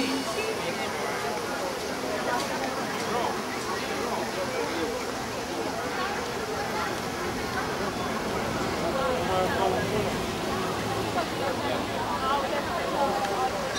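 A crowd of people chatters in the open air all around.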